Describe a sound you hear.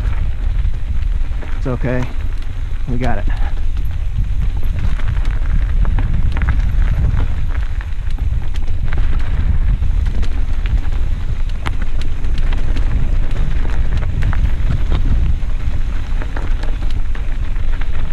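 Wind rushes past, buffeting the microphone.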